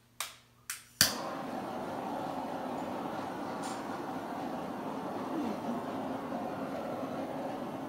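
A blowtorch roars with a steady hiss.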